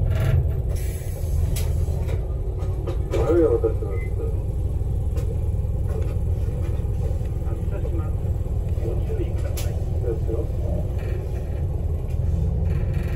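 A car's engine and tyres rumble steadily from inside the moving car.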